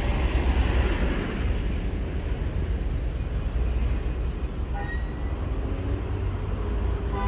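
Car engines rumble low and steady in slow street traffic nearby.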